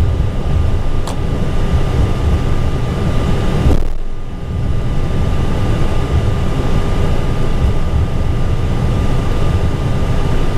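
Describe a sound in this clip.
Jet engines hum steadily as an airliner taxis.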